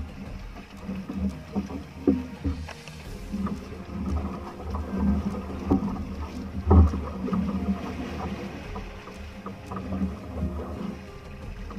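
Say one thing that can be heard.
Water splashes and laps against a boat's hull.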